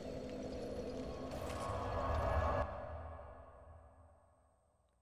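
A soft magical whoosh swells and then fades away.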